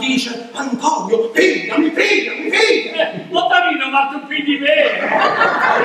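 An elderly man speaks with feeling on a stage, heard from the hall.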